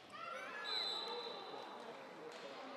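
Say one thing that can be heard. A referee's whistle blows once, briefly.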